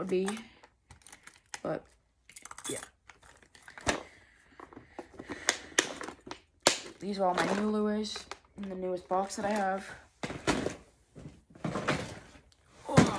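Small plastic pieces rattle and click in a box.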